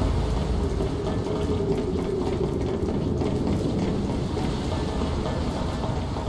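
Boots clang on metal stairs as two soldiers go down.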